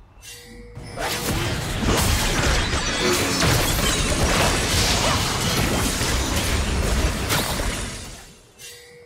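Video game spell effects burst and crackle during a fight.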